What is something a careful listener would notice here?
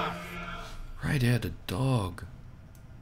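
A metal wire cage rattles as it is set down.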